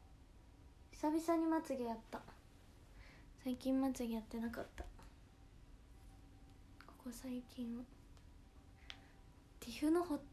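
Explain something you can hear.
A young woman speaks close to a microphone, with animation.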